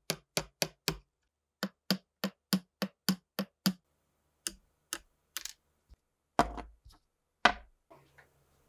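A metal tool clicks and taps against guitar frets.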